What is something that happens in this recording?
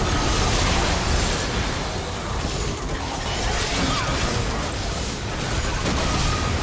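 Magic spells crackle and whoosh in a busy game fight.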